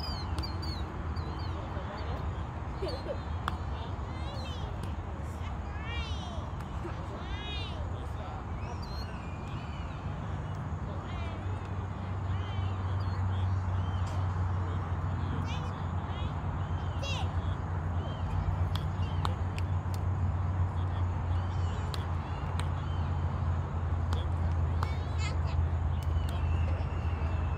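A bat swishes through the air in repeated practice swings.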